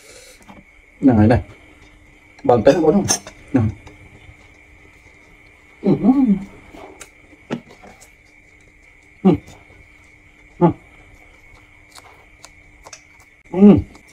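A man close by makes short, pleased humming sounds while eating.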